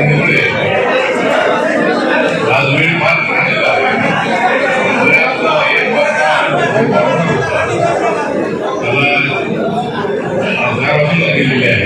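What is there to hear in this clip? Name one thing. A man speaks loudly into a microphone over a loudspeaker, with an echo.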